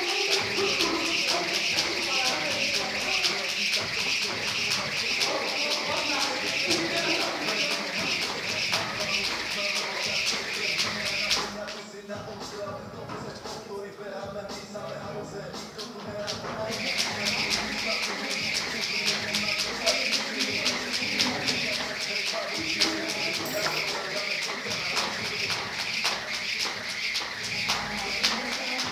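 A skipping rope whips and slaps the floor in a quick, steady rhythm.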